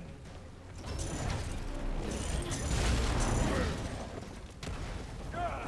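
Wooden crates smash and splinter.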